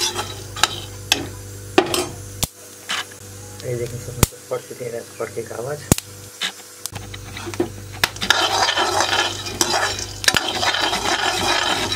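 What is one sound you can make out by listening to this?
A metal spoon stirs dry kernels that rattle and scrape in a metal pan.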